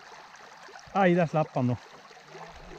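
A fishing reel whirs briefly.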